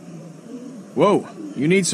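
A man speaks up close.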